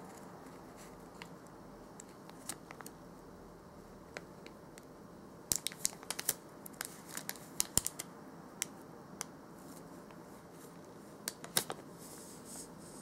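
A plastic wrapper crinkles and rustles between fingers.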